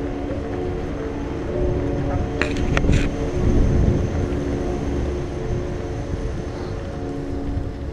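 Wind rumbles and buffets against the microphone.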